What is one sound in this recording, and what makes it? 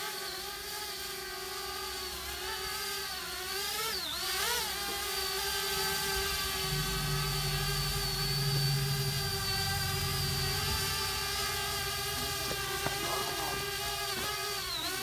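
A drone hovers overhead with a steady, high buzzing whine that shifts in pitch now and then.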